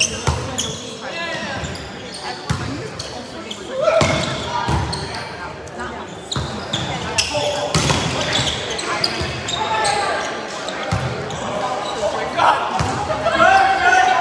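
A volleyball is struck with sharp slaps, echoing in a large gym.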